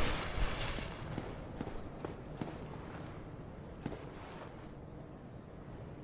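Armored footsteps clank on stone.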